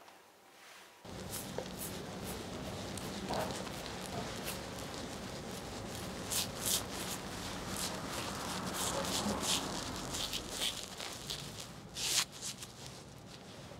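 A shaving brush scrubs lather onto a man's stubbly face.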